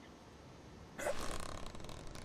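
A fishing rod swishes through the air.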